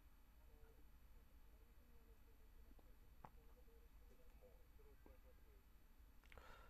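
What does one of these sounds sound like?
A man speaks quietly and calmly into a microphone.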